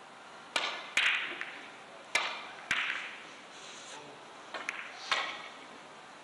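Billiard balls click sharply against each other and the cushions.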